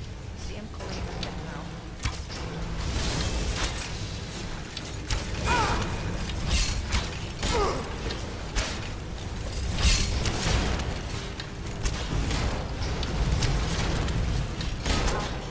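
Magic arrows whoosh and crackle as they are shot.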